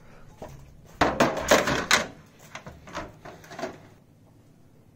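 A wire mesh basket rattles against a metal pan.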